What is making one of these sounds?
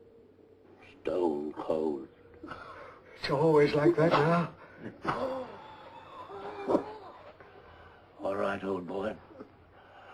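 An elderly man speaks with animation nearby.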